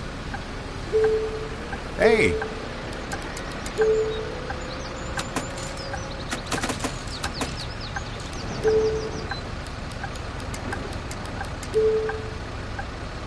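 A ticket machine beeps in short single tones.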